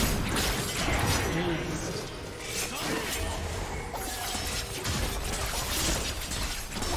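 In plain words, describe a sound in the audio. Video game spell effects crackle and clash in a battle.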